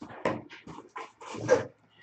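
A cardboard box scrapes and rustles as it is handled nearby.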